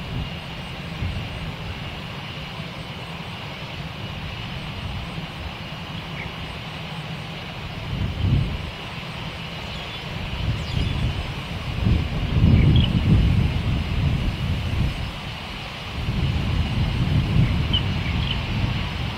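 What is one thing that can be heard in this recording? A jet airliner's engines rumble and whine as it taxis on the runway.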